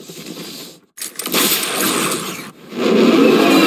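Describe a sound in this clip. Smoke whooshes past in a sudden rush.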